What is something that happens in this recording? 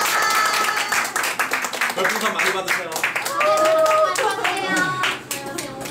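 A group of young people claps along in quick rhythm.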